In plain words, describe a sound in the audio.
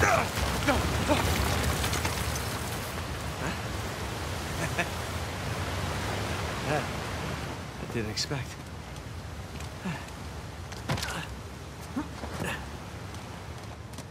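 Footsteps fall on rock.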